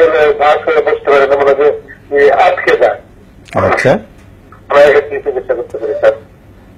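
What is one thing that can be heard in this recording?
A middle-aged man speaks calmly and steadily into a close microphone, with short pauses.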